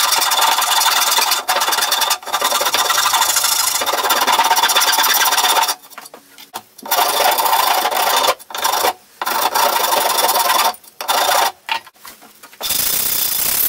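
A file rasps back and forth on wood.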